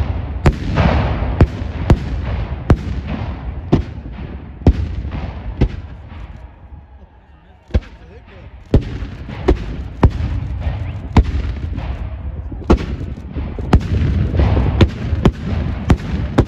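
Rifles fire in ragged volleys outdoors, with sharp cracks echoing far across open ground.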